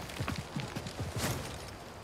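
Hands scrape and grip on a rock wall while climbing.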